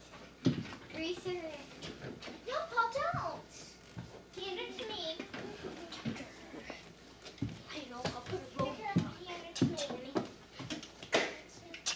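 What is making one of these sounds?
Small hands and knees patter and thump on a wooden floor.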